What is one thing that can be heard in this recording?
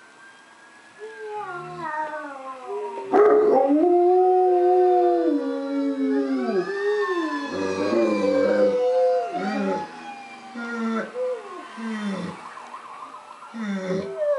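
A large dog howls loudly, with long rising and falling wails.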